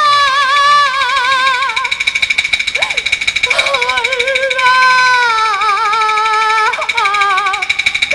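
A woman sings in a high, wavering voice with vibrato.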